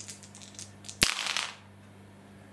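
Dice clatter and roll across a hard surface.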